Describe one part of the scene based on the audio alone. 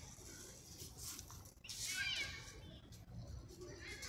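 A cat's paws rustle softly through grass.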